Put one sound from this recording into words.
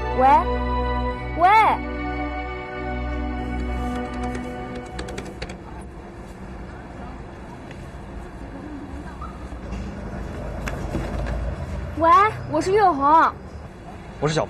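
A young woman calls out questioningly into a phone.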